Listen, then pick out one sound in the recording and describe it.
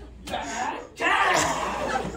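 A group of teenagers laughs and shouts loudly.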